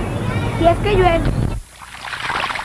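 A young girl speaks clearly and close by.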